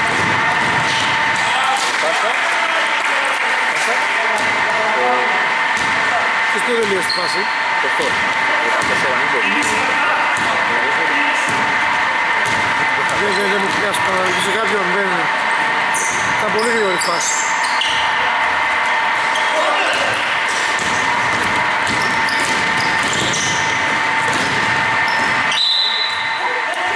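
A basketball bounces on a hardwood floor in a large echoing hall.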